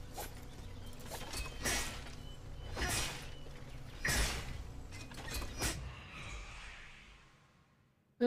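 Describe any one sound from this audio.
Metal blades strike and clash in a fight.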